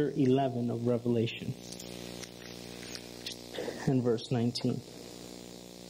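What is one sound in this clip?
A man speaks slowly and solemnly through a microphone, pausing between phrases.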